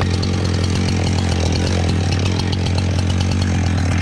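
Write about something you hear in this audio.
A chainsaw chain cuts through a log.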